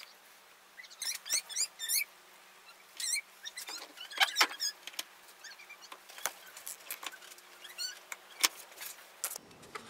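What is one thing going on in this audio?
Small clicks and rustles come from a leather sheath being handled and clamped.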